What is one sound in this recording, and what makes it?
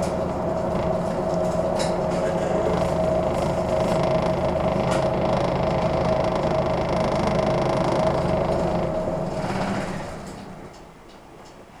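A van engine idles with a steady hum nearby, then fades away.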